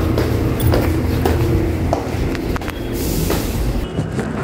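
Footsteps tread down hard stone stairs.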